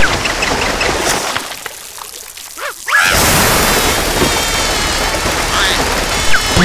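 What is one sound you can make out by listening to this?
A small cartoon creature yelps and squeals.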